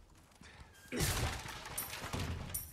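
A wooden barrel smashes apart with a loud crack.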